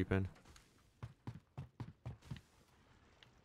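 Footsteps crunch over loose rubble.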